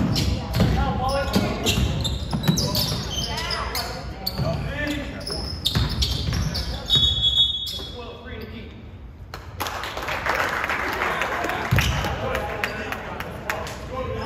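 Spectators near the court talk and call out in a large echoing gym.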